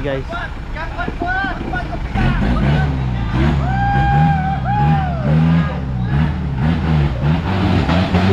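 Tyres spin and churn through thick mud.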